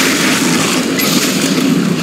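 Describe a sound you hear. A weapon fires with a sharp blast.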